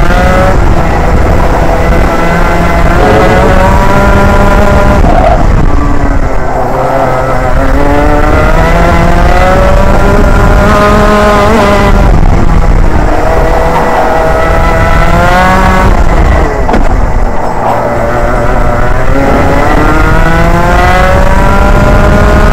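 A two-stroke racing kart engine screams from onboard, its revs climbing on the straights and dropping into the corners.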